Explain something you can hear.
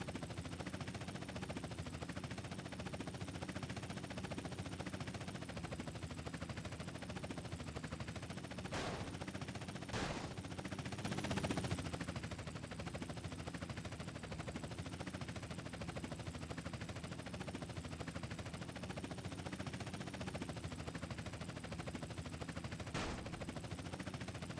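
Helicopter rotor blades chop steadily and rapidly close by.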